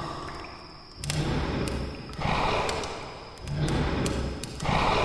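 A pig grunts and snorts loudly.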